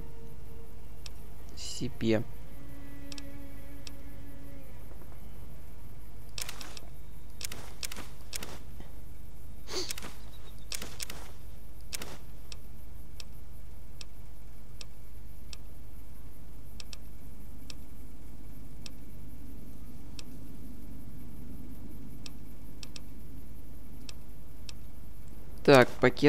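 Soft interface clicks tick quickly and evenly as a menu list scrolls.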